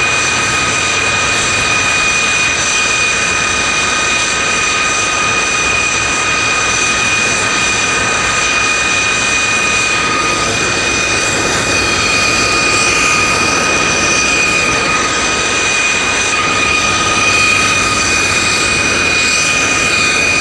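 Propeller plane engines drone loudly and steadily nearby.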